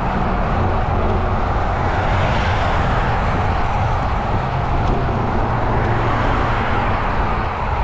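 A car engine hums at a steady speed.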